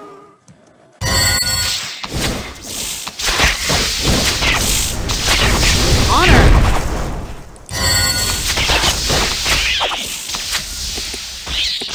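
Swords clash and strike in a fierce fight.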